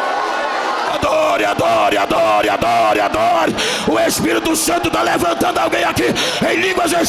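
A man shouts fervently into a microphone, heard through loudspeakers.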